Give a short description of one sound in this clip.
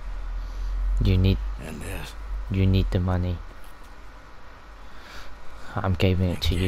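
A man speaks quietly in a low, gruff voice.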